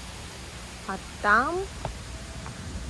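A young man speaks briefly nearby.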